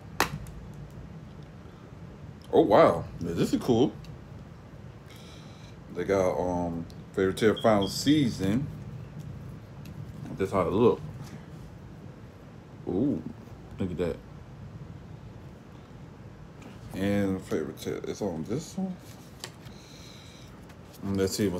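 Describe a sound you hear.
A plastic game case clicks open and shut.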